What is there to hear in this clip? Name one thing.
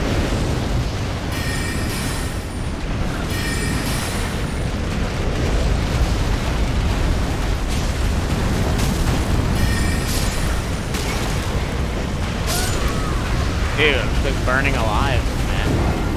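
Flames roar in loud bursts.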